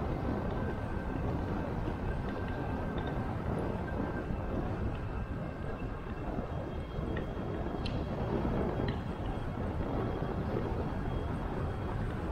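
Tyres hum softly on smooth asphalt.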